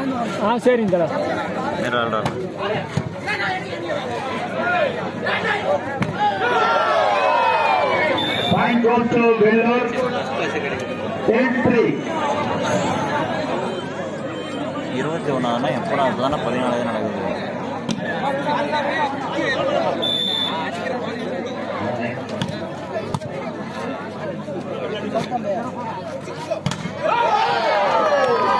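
A large outdoor crowd shouts and cheers continuously.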